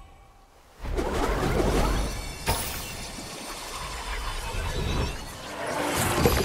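A burst of magic whooshes and crackles.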